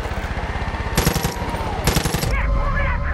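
A rifle fires two loud shots.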